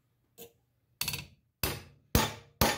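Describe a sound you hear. A hammer strikes metal with sharp, ringing blows.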